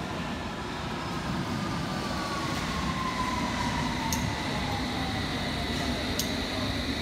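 Train brakes squeal with a falling whine.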